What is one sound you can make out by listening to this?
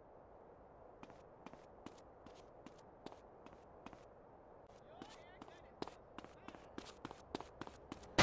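Footsteps slap quickly on pavement as a man runs.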